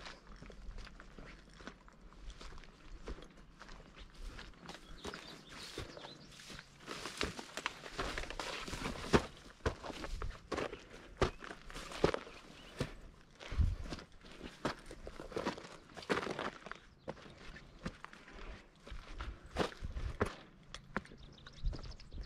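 Dry grass rustles against legs.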